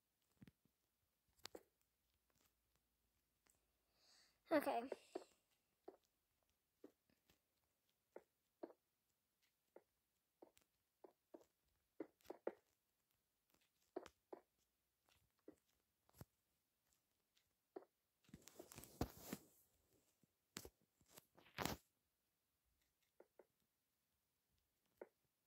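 Stone blocks are placed and broken with short, soft thuds.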